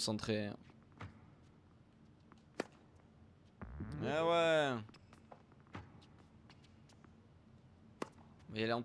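A tennis ball is struck sharply by a racket.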